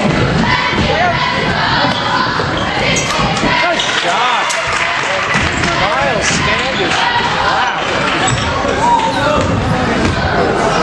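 Young players and spectators chatter and call out in the echoing hall.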